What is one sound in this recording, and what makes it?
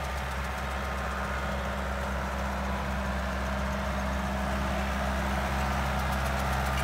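A tractor engine rumbles steadily, growing louder as it approaches.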